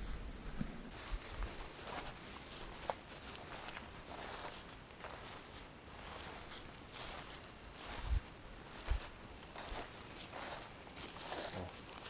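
Boots tread softly through grass.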